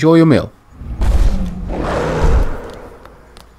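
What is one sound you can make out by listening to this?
Heavy blows land with deep, rumbling thuds.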